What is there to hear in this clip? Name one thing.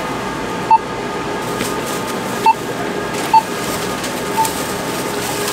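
A self-checkout scanner beeps sharply a few times.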